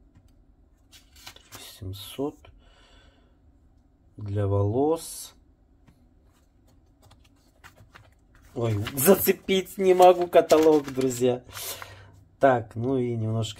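Paper pages rustle as they are turned by hand.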